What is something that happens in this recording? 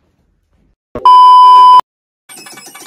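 A steady high test tone beeps loudly.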